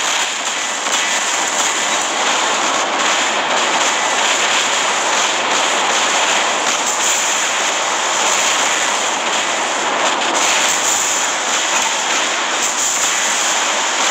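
Heavy metal footsteps stomp steadily.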